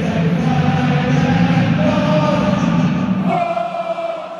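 A crowd roars loudly.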